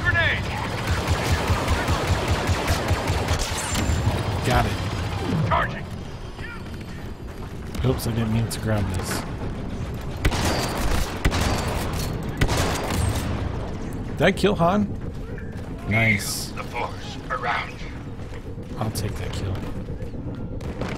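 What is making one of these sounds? Blaster guns fire in rapid bursts.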